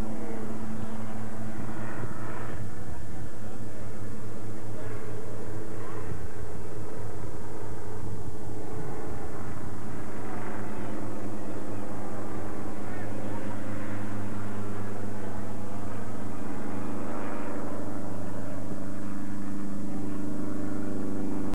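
Children chatter and call out outdoors.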